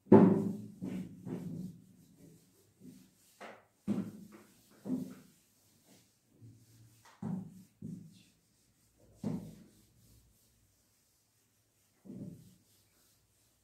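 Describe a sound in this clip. An eraser rubs and squeaks across a whiteboard in short strokes.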